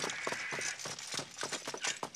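Horse hooves clop on stone.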